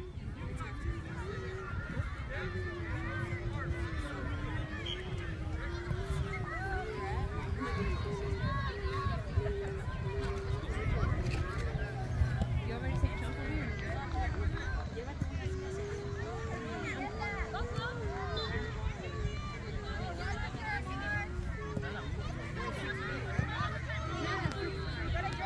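Children shout and call out in the distance.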